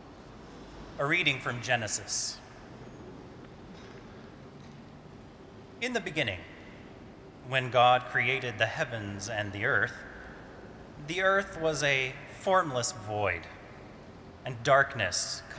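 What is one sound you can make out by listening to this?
A man speaks calmly into a microphone, in a large echoing hall.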